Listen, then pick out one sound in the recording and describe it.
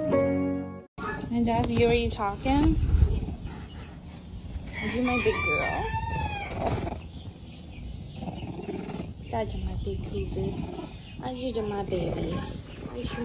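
A young cougar chirps and mews close by.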